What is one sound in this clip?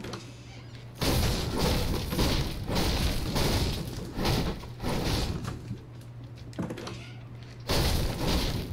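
A pickaxe repeatedly smashes into wooden furniture.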